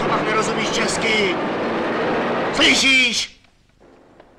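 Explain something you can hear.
A car passes close by on a street.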